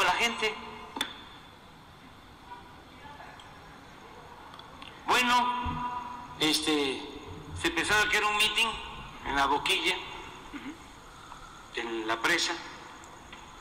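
An elderly man speaks calmly through a microphone, in short bursts with pauses.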